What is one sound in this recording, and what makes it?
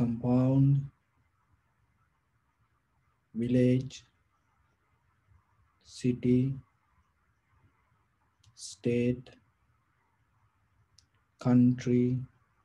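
A man chants slowly in short, drawn-out phrases with long pauses, close to a microphone.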